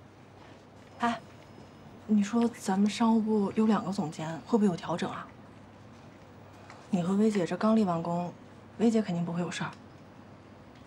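A young woman talks calmly, close by.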